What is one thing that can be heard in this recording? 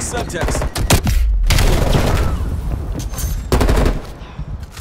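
Rapid gunfire rattles out in loud bursts.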